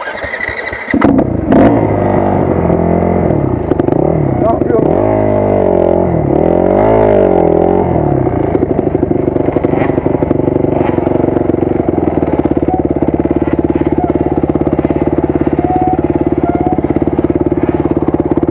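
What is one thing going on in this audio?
A dirt bike engine idles with a steady, rough rumble.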